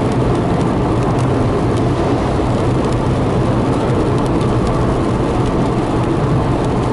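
A car engine rumbles steadily as it drives on a wet road.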